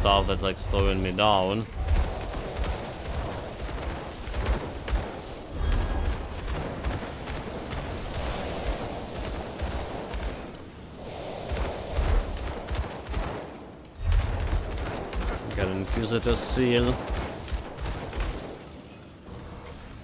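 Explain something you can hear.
Magical blasts crackle and boom in quick bursts.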